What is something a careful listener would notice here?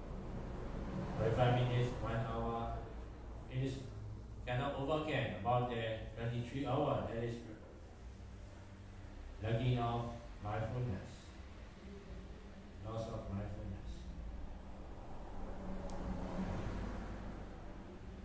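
A young man speaks calmly into a microphone in a room with some echo, pausing between phrases.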